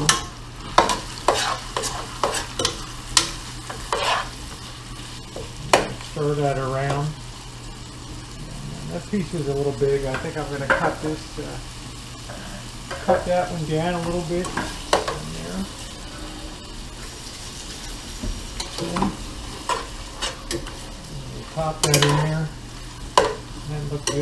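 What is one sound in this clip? A spoon scrapes and clinks against a pot.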